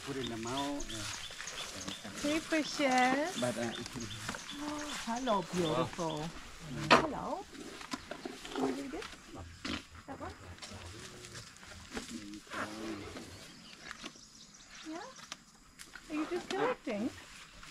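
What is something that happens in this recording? Men and women talk with animation close by, outdoors.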